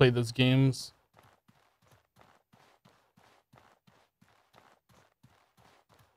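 Footsteps crunch softly on rough ground.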